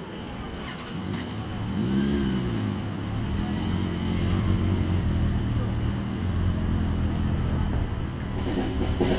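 A motorcycle engine starts and idles with a deep rumble, revving up and down.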